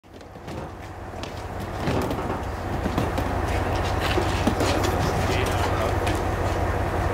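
Cases knock and clatter as they are loaded into a metal skip.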